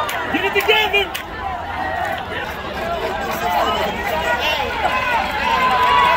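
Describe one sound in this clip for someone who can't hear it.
Young players shout to each other across the field.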